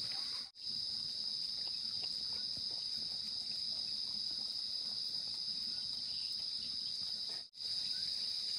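A dog chews and laps food from a bowl.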